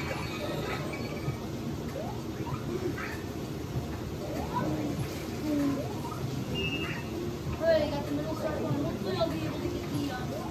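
Short bouncy video game sound effects chirp and blip from a television.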